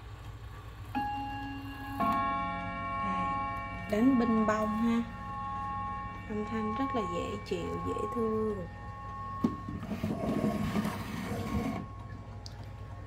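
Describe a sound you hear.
A clock chimes with ringing tones that linger and slowly fade.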